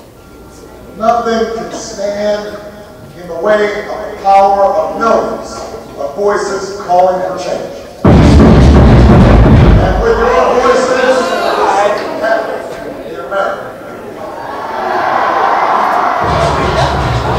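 A young man raps loudly through a microphone in a large hall.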